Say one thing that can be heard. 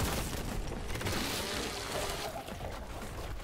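A chainsaw roars.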